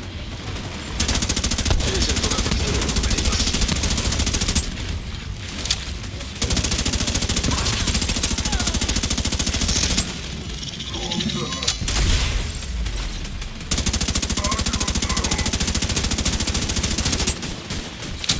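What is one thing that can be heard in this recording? An automatic rifle fires long, rapid bursts close by.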